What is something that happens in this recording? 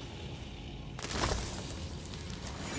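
A crystal shatters with a sharp crack.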